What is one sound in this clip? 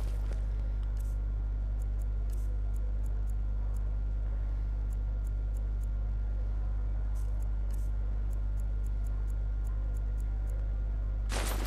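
Soft menu clicks tick in quick runs.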